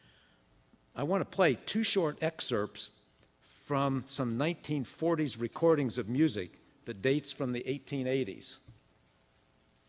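A man speaks calmly into a microphone, heard over loudspeakers.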